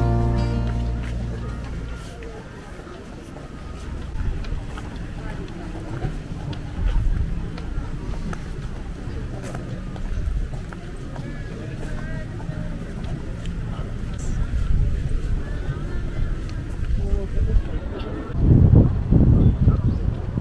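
Footsteps tap on paving.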